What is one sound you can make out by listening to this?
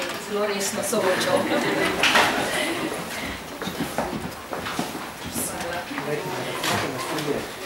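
Papers rustle and shuffle on a table.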